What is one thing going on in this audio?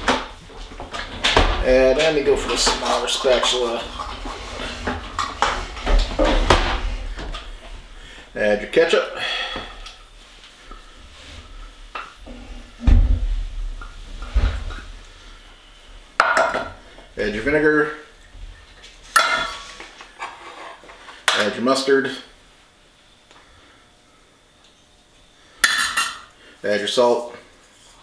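A middle-aged man talks calmly and close by.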